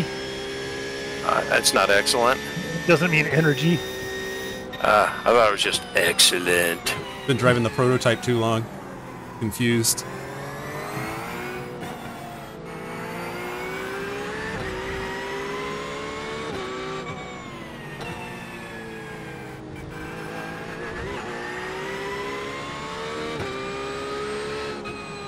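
A racing car engine drones steadily, rising and falling in pitch as it changes gear.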